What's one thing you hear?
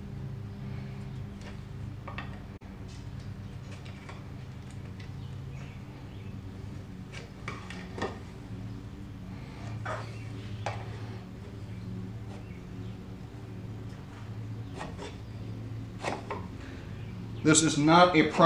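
Pieces of wood knock and clack together on a workbench.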